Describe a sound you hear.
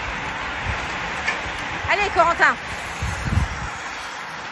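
A pack of racing bicycles whirs past close by.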